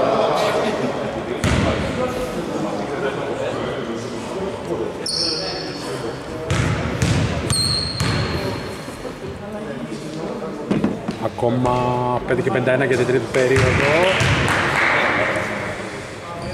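Men's voices call out across a large echoing hall.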